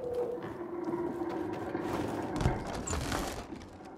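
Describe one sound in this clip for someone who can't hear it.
A wooden lid scrapes as hands lift it.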